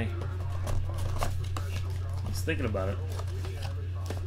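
Cardboard packaging rustles and scrapes as hands open it.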